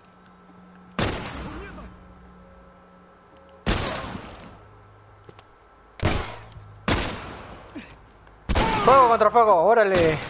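Loud gunshots ring out one at a time.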